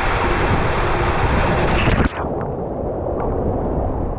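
Water splashes as a rider lands in a run-out channel.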